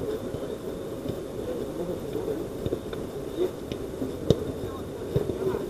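Several men call out to each other at a distance outdoors.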